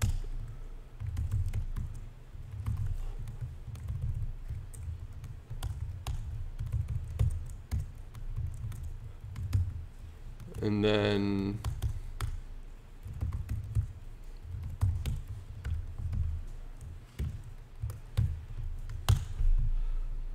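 Keys clatter as a man types on a laptop keyboard.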